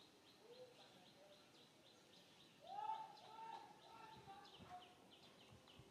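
A young monkey makes soft, high cooing calls close by.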